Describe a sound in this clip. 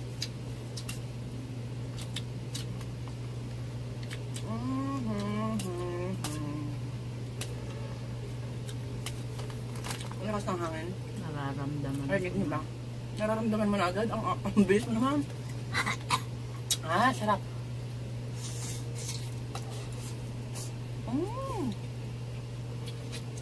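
A young woman chews noodles noisily.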